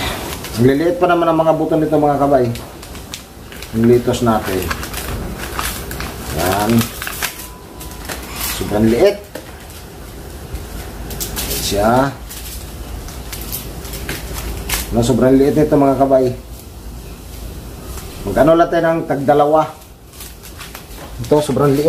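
A paper packet rustles in someone's hands.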